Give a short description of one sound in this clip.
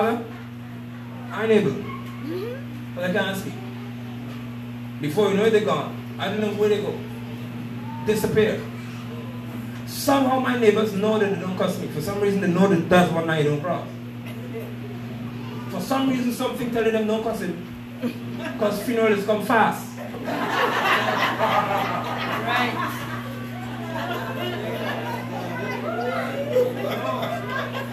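A man preaches with animation into a microphone, his voice heard through loudspeakers in an echoing room.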